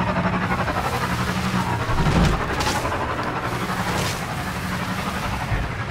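Water splashes under motorbike wheels.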